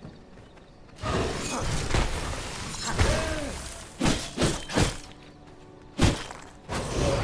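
A magical blast crackles and whooshes.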